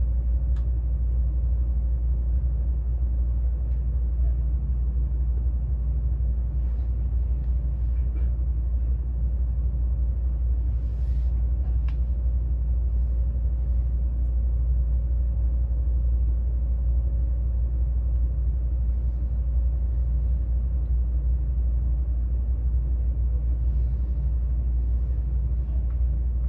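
A train rumbles steadily along the track, heard from inside a carriage.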